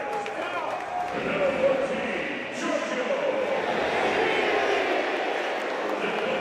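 A large crowd cheers in an open stadium.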